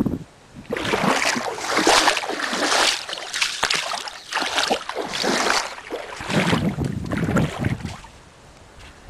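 Bare feet splash through shallow water.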